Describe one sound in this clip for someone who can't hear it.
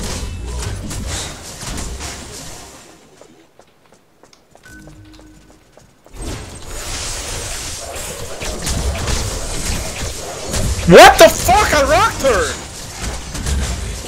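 Weapons clash and magic blasts burst in a game battle.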